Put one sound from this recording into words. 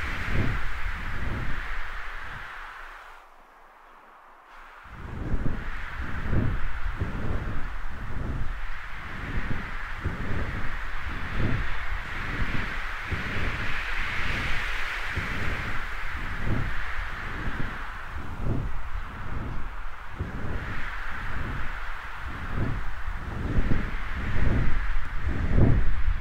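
Large wings beat in steady, rhythmic whooshes.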